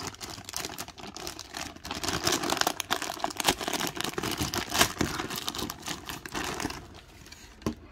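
A plastic wrapper crinkles and rustles in someone's hands.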